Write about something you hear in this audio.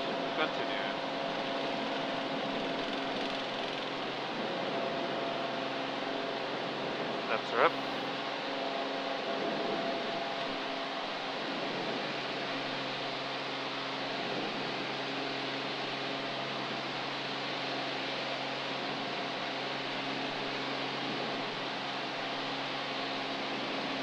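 Wind rushes loudly past the plane.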